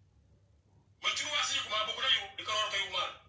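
A woman speaks with animation close to a phone microphone.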